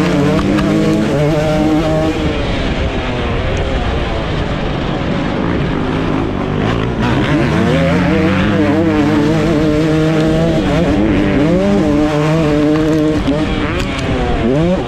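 Wind buffets loudly past the rider.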